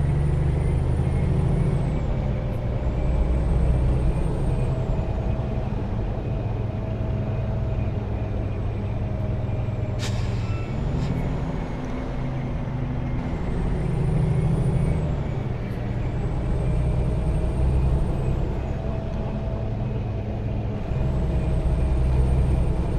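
A truck engine drones steadily, rising and falling in pitch.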